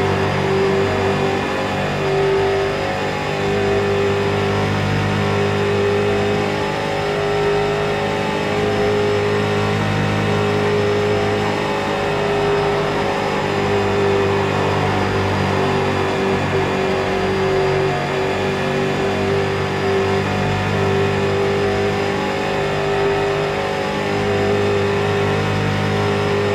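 A race car engine roars loudly at high revs from inside the cabin, its pitch rising and falling slightly through the turns.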